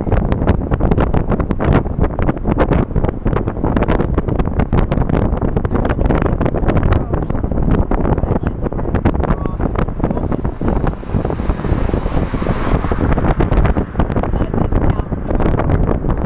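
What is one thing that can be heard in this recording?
Wind buffets loudly past an open car window.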